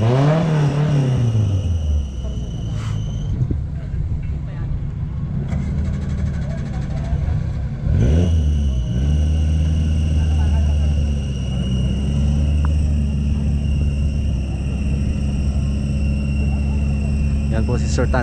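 Off-road vehicle engines rumble and rev nearby.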